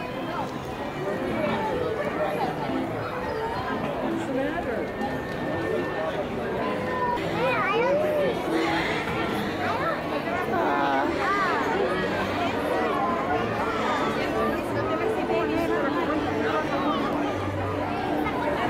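Carousel music plays nearby.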